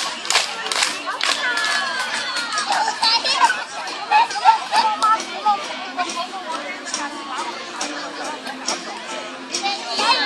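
A crowd of young children shout and chatter outdoors.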